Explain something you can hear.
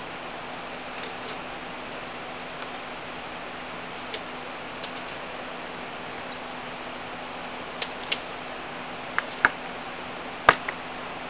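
Metal parts of a machine gun click and clack as a soldier handles it.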